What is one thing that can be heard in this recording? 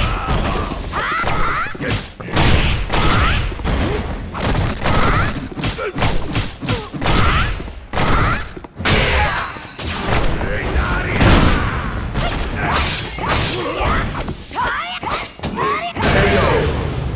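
Heavy punches and kicks land with loud, sharp thuds in quick bursts.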